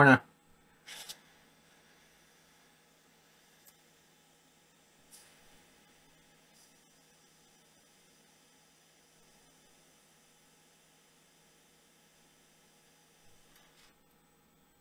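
A hot air blower hums and hisses steadily.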